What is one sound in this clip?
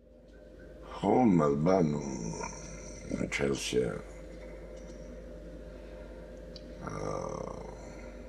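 An elderly man speaks slowly and gravely, close by.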